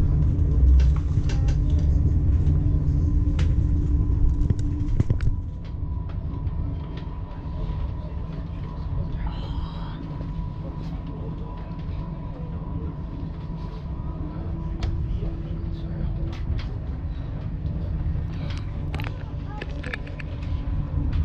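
Wheels click and clatter over rail joints.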